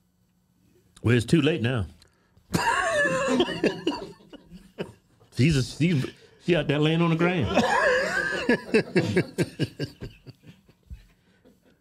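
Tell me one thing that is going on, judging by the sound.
A second man answers into a close microphone.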